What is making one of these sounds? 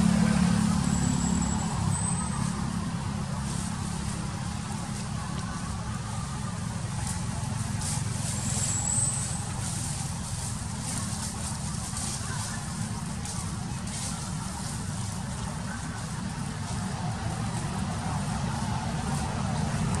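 Dry leaves rustle as a monkey picks through them on the ground.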